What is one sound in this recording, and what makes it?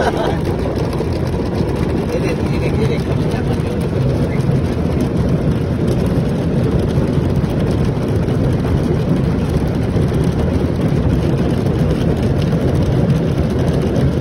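Fabric rubs and rustles close against the microphone.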